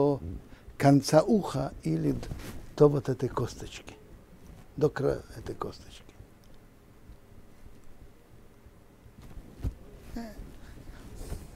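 An elderly man speaks with animation, close to a microphone.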